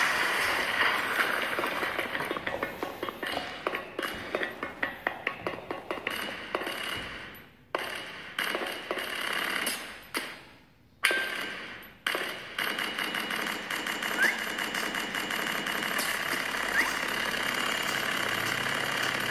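Game sound effects and music play from a tablet's small speaker.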